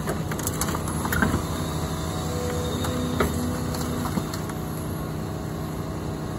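An excavator engine rumbles steadily nearby.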